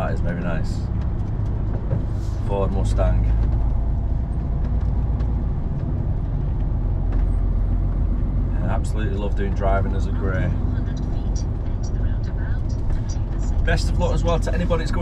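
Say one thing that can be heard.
A vehicle engine rumbles steadily while driving.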